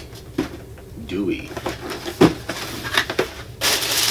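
A cardboard box lid slides and rustles open.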